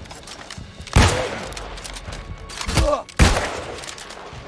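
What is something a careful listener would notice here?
A gun fires loud, sharp shots.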